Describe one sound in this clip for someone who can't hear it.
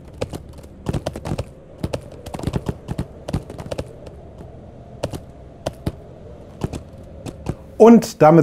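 A horse's hooves clop quickly over the ground.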